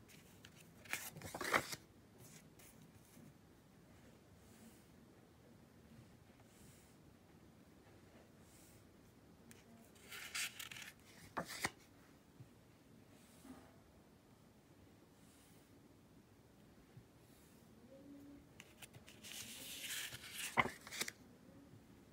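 Paper cards rustle and slide as they are flipped over.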